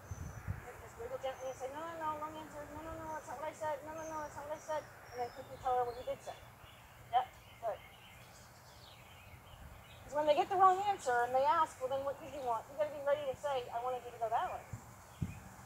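A young girl talks nearby with animation.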